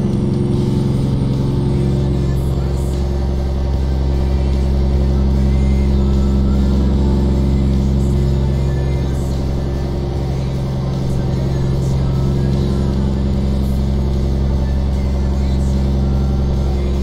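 Tyres hum on a paved road.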